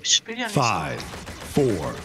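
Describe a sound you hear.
A magical blaster fires with a sharp zap.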